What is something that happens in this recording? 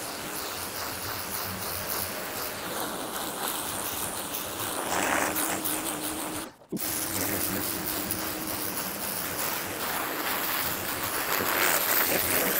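A pressure washer motor hums steadily.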